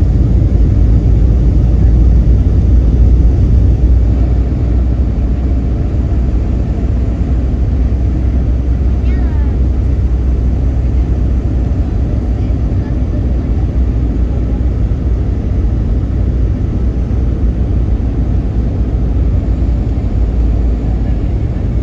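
A plane's engines roar in a steady, deep rumble inside the cabin.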